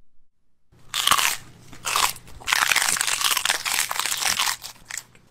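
A young man chews and tears at chewy candy with wet, smacking sounds.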